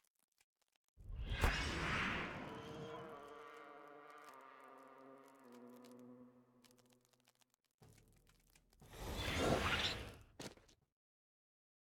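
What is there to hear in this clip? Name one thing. A magic spell whooshes and fades into a ringing tone.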